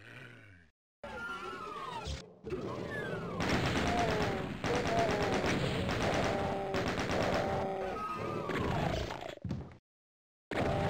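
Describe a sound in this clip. A rapid-fire gun blasts in a video game.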